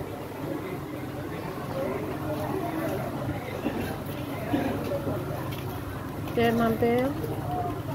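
Kittens eat and chew food off a floor.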